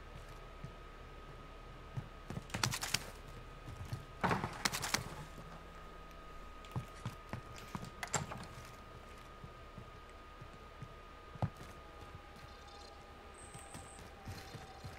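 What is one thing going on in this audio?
Footsteps thud on hard floors.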